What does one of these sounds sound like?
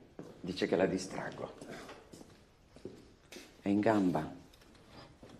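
An elderly man speaks quietly and calmly, close by.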